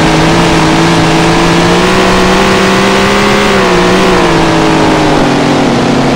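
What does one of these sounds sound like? A race car engine roars loudly, its pitch rising and falling.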